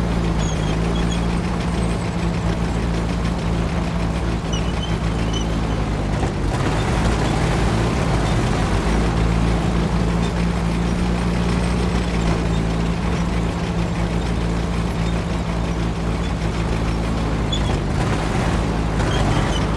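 A tank engine rumbles steadily as the tank drives over rubble.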